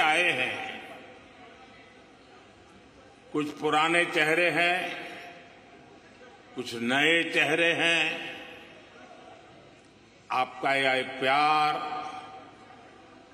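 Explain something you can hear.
An elderly man speaks slowly and calmly into a microphone, in phrases with long pauses, in a large echoing hall.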